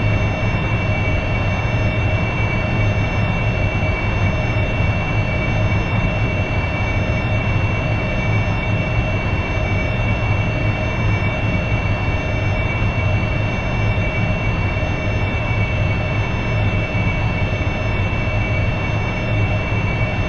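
A jet engine roars and whines steadily.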